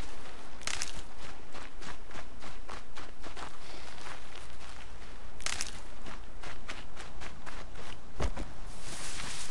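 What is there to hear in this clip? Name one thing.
Quick footsteps rustle through grass and leaves.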